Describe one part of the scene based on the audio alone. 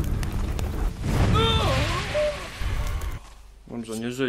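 A fiery spell bursts with a loud whoosh.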